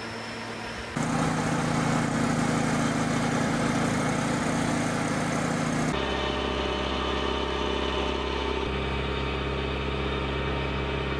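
A tractor engine rumbles loudly and steadily.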